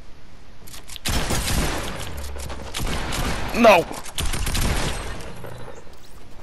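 Gunshots fire rapidly and loudly.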